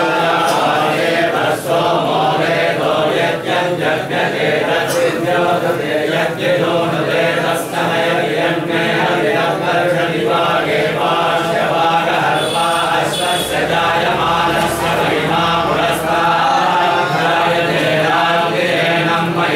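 A group of men chant together in unison.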